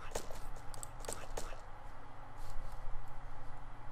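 A shovel digs into soft earth with short, dull thuds.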